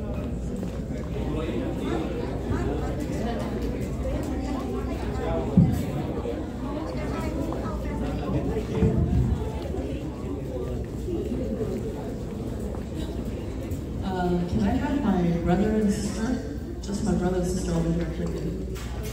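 A crowd of people murmurs quietly nearby.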